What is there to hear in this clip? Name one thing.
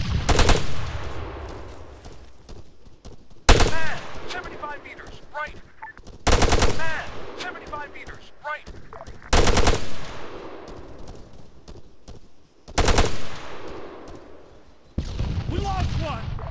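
Gunshots crack loudly and echo across open hills.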